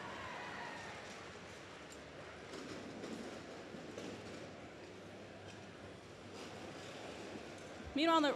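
Crowd murmurs in a large echoing hall.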